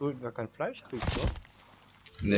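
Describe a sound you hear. An axe strikes with a heavy thud.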